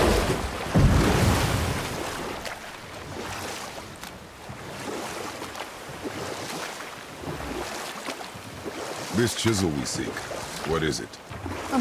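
Oars splash and paddle through water.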